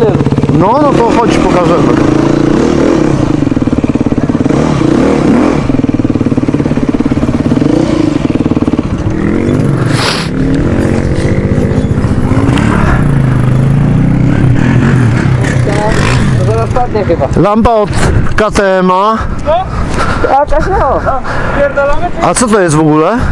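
A dirt bike engine idles close by with a steady rattling drone.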